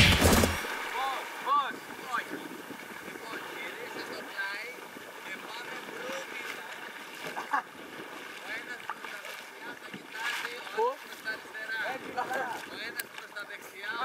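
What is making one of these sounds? Young men talk and shout to each other outdoors on open water.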